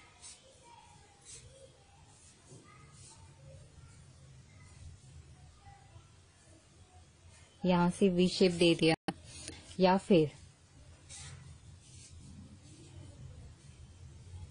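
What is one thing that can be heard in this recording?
A marker pen squeaks and scratches on paper.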